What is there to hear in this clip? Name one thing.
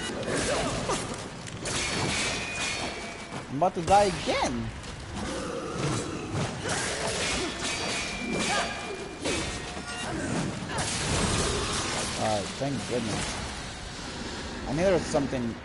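A sword slashes and strikes in a fight.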